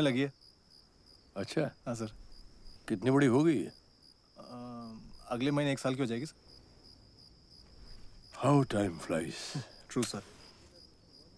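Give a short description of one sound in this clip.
Two men talk and laugh close by.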